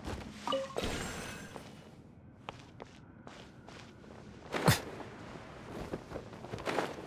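Video game sound effects whoosh and chime.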